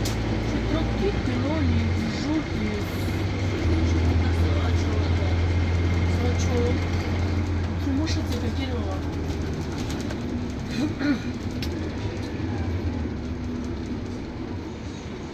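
A single-deck diesel bus drones under load, heard from inside.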